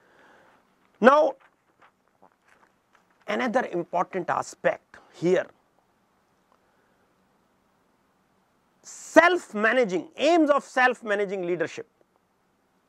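A middle-aged man speaks calmly and closely into a microphone, in short bursts with pauses.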